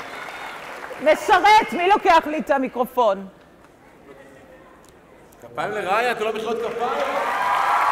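A woman talks loudly through a microphone, echoing over loudspeakers in a large hall.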